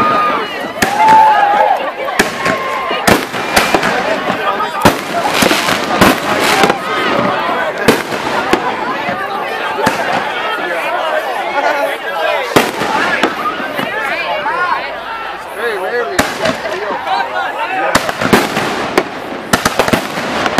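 Fireworks bang and crackle overhead, one burst after another.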